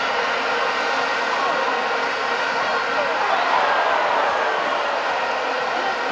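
A large stadium crowd roars and cheers loudly.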